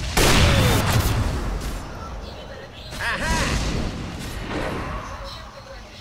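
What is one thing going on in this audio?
Magic spells and weapons clash in crackling, booming bursts.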